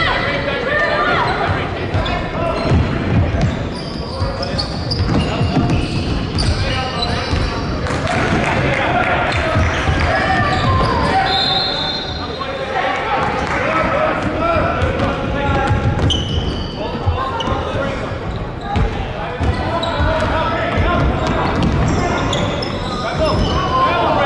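Basketballs thump on a wooden floor in a large echoing hall.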